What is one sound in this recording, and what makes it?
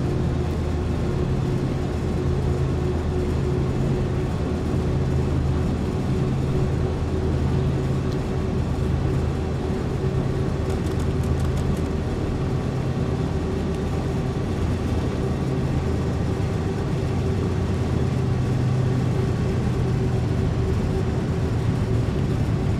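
A diesel locomotive engine drones steadily and throbs.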